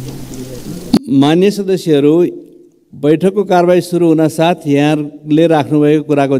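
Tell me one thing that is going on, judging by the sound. An elderly man speaks firmly through a microphone.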